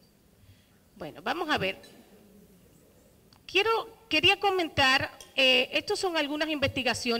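A woman speaks into a microphone, heard through loudspeakers in a large room.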